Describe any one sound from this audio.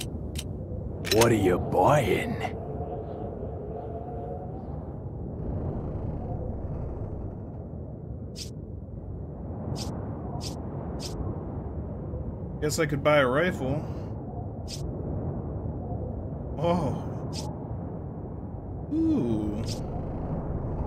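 A young man speaks with animation close to a microphone, in short bursts.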